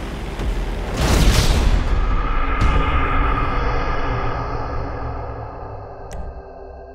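A loud explosion booms and rumbles away slowly.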